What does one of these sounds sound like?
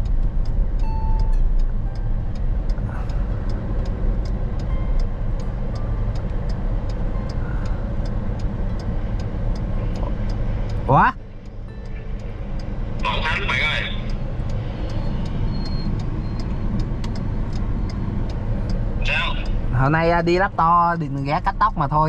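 A car engine hums and tyres rumble on the road.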